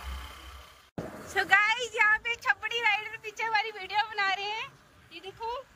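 A second young woman talks with animation close up.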